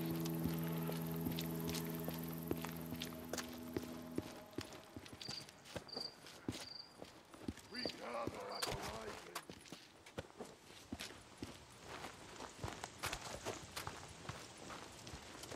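Footsteps crunch softly over grass and gravel.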